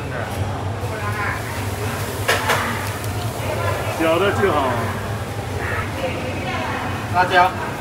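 Noodles rustle as a cook shakes them loose over a metal tray.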